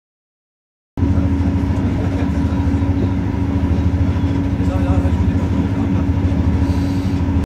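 A moving passenger cabin hums with a low, steady rumble.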